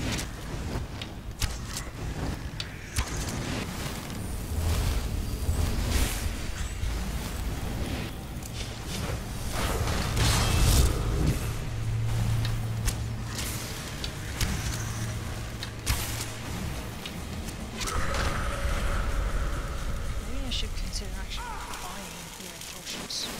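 A bowstring twangs sharply as arrows fly.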